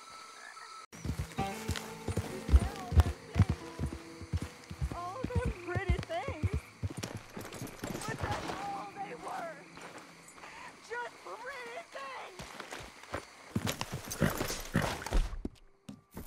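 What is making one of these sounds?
A horse's hooves clop steadily on soft ground.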